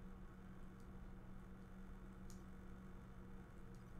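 Menu selection blips sound.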